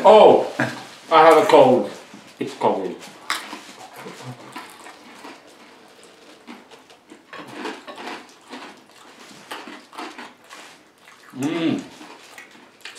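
A young man chews and eats noisily close by.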